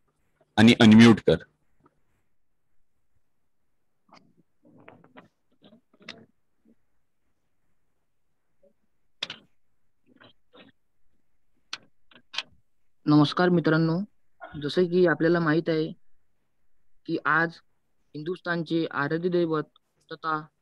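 A man speaks calmly through an online call, in short bursts with pauses.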